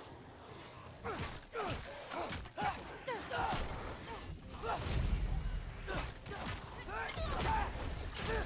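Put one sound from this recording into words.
Weapons clash and strike in quick, heavy blows.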